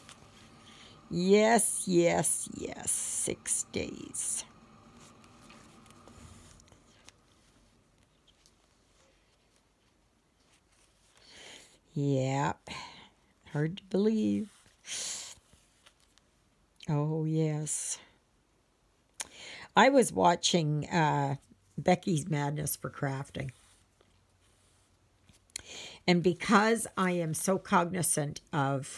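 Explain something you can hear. Yarn rasps softly as it is pulled through stiff canvas.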